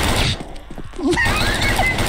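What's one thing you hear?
A submachine gun fires a burst.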